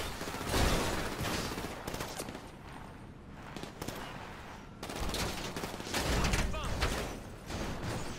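Tyres roll over gravel.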